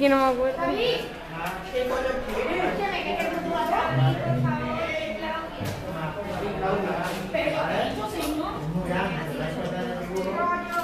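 Children and young teenagers chatter and talk over each other in a busy room.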